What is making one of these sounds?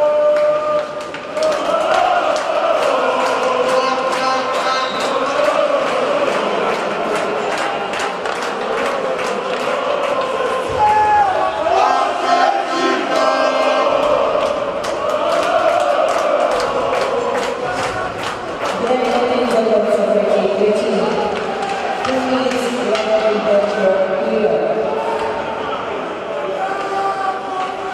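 Hockey sticks knock against a puck.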